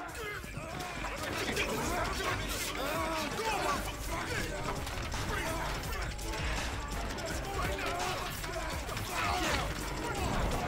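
Batons thud against a body.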